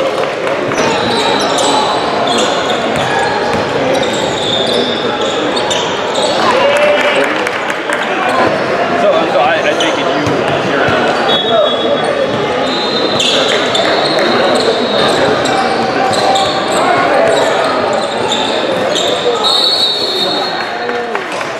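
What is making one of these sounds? Sneakers squeak sharply on a hardwood court.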